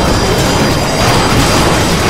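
A huge monster roars.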